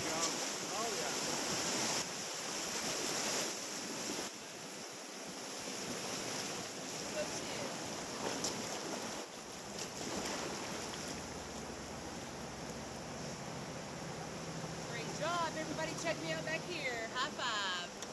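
White water rushes and splashes loudly around a raft, then calms to a gentler flowing river.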